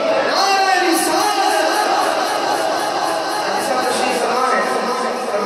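A man sings loudly into a microphone, heard through loudspeakers in a large echoing hall.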